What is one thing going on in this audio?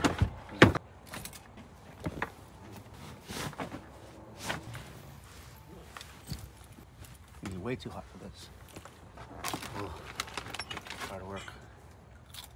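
Bedding rustles as a man smooths it.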